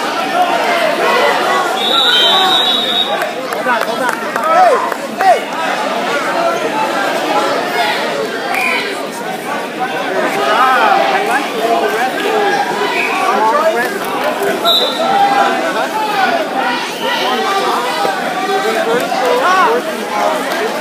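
A crowd of adults and children chatters and calls out in a large echoing hall.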